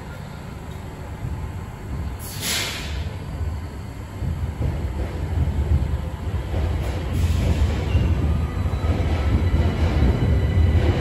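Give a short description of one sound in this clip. A subway train rumbles along the platform, growing louder as it pulls away.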